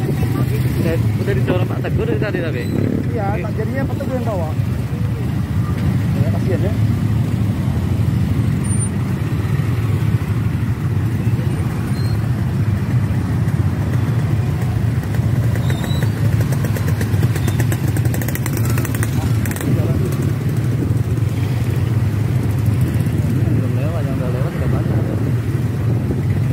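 Men talk nearby among the crowd of riders.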